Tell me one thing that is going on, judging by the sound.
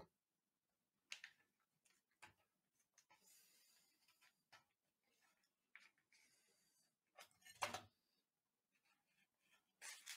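A fork scrapes and clinks on a metal tray.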